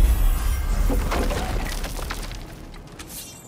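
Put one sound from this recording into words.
A heavy stone door grinds and rumbles.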